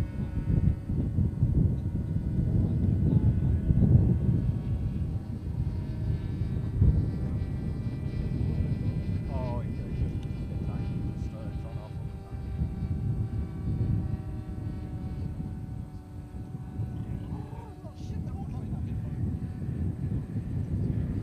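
A propeller plane drones steadily overhead.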